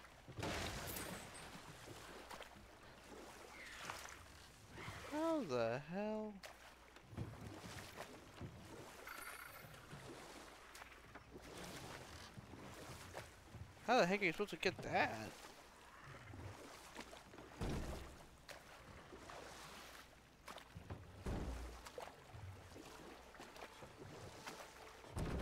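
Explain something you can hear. A paddle splashes through still water.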